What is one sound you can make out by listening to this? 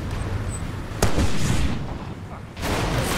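A rocket launcher fires with a loud, booming blast.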